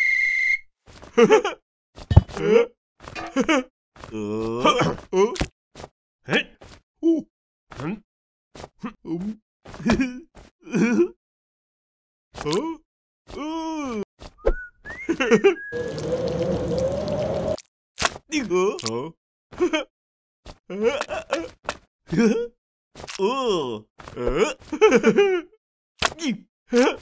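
A young woman speaks and exclaims with animation.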